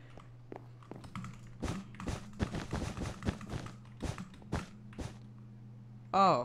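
Blocks are placed with quick, soft clicks.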